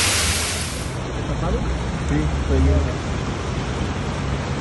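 Floodwater rushes and churns along a street.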